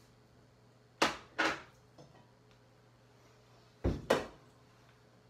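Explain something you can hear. Dishes clatter sharply a few times.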